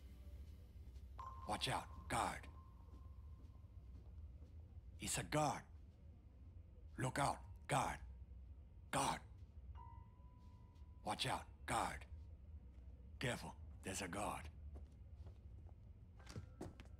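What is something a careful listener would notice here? Footsteps thud on wooden stairs and floors.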